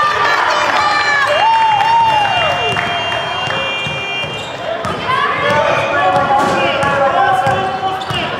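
A basketball bounces on the floor.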